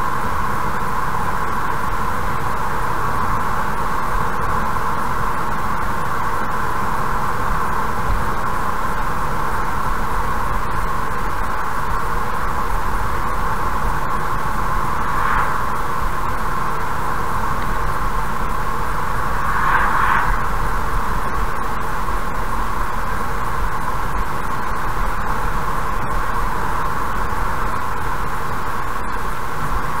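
A car's tyres and engine hum steadily on a road.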